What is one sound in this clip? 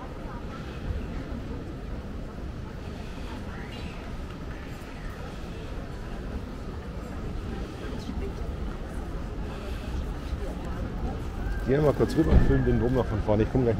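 Passers-by murmur and walk outdoors in a busy pedestrian street.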